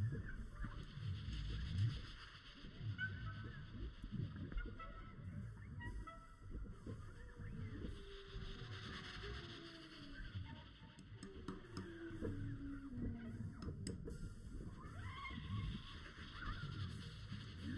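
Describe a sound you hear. A jazz band plays an upbeat tune on horns, piano, guitar, bass and drums.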